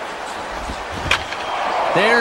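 A wooden bat cracks against a baseball.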